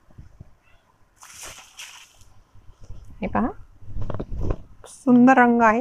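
Silk fabric rustles as it is unfolded and shaken.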